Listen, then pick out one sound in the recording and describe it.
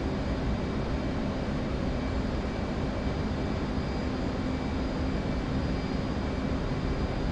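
A jet engine roars steadily inside a cockpit.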